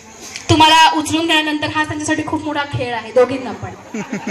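A woman sings loudly through a microphone outdoors.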